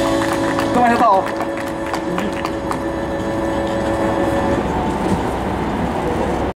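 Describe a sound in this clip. An acoustic guitar is strummed through a loudspeaker.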